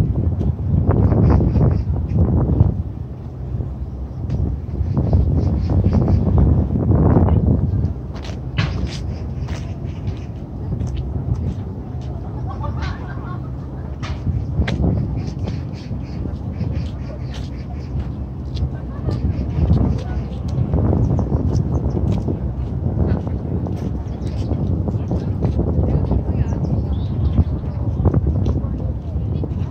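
Wind blows outdoors in gusts.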